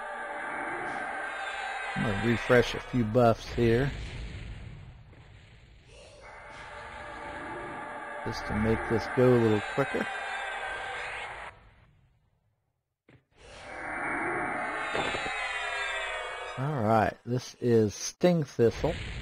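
Magic spells hum and shimmer with ringing tones.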